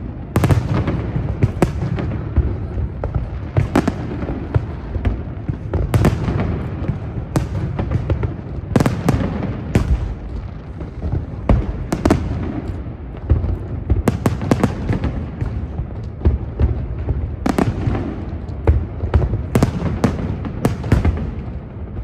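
Low rumbling booms of fireworks roll on steadily.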